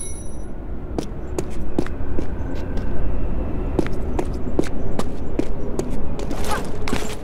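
Footsteps tap quickly on a stone floor in a large echoing hall.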